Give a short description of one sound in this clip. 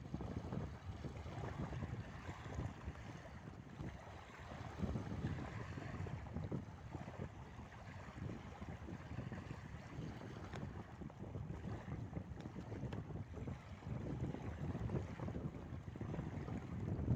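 Small waves wash gently onto a beach.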